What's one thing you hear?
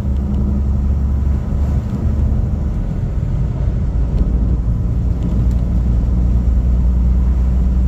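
An oncoming car passes by.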